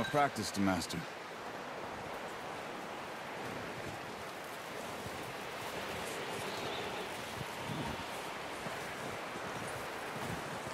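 Wind blows steadily through a snowstorm.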